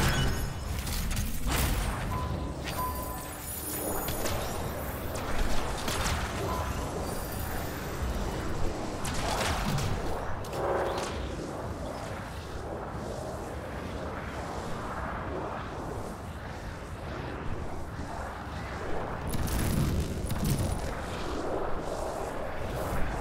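Jet thrusters roar steadily.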